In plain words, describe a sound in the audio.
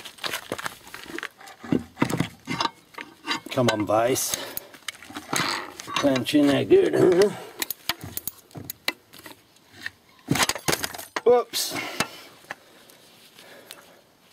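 Metal parts clink and clatter.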